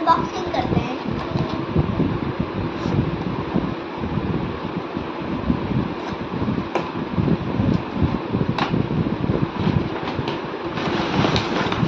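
Cardboard packaging rustles and scrapes.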